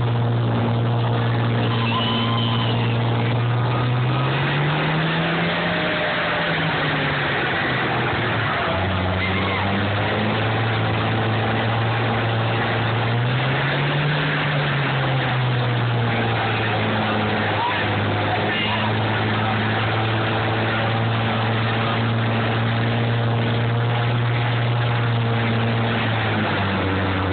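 A tractor engine roars loudly and steadily, its pitch rising and falling as it revs.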